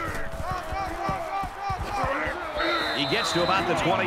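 Football players collide and thud in a tackle.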